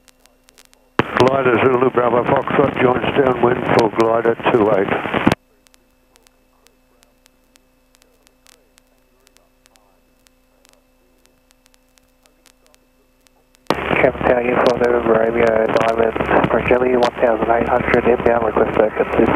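A young man speaks calmly through a headset intercom.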